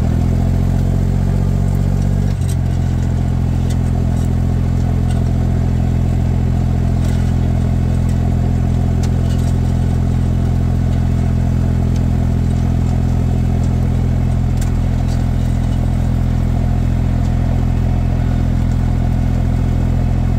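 Soil scrapes and crumbles under a plough.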